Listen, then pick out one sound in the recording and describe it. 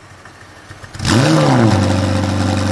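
A sports car engine starts with a sudden roar.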